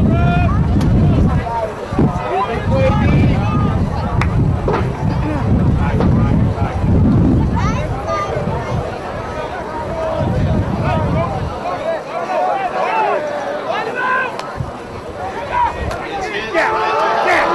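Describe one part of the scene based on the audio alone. A sideline crowd of men and boys chatters and calls out outdoors.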